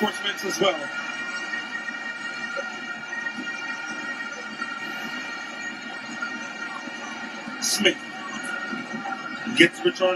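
A large stadium crowd hums and chants steadily.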